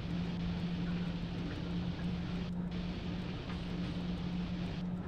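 A locomotive engine drones steadily.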